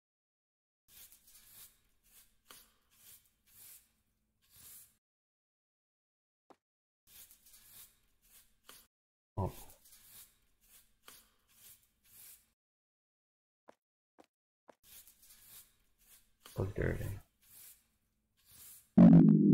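A broom sweeps across a hard floor in short brushing strokes.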